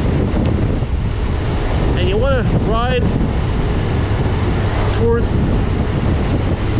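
Wind rushes past steadily as a motorcycle rides along.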